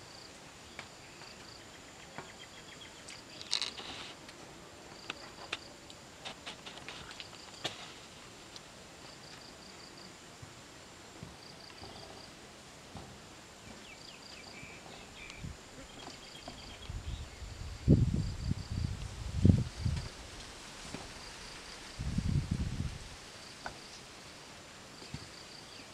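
Wet fish are set down with soft taps on a metal sheet.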